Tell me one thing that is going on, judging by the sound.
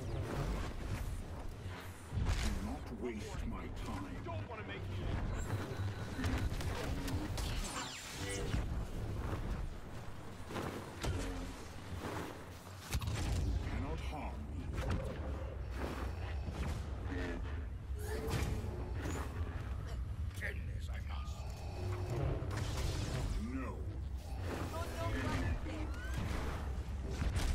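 Lightsabers hum and clash with sharp buzzing strikes.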